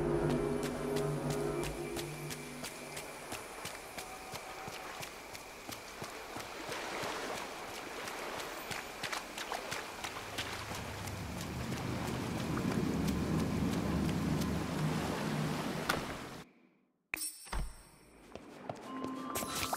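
Quick footsteps patter on the ground.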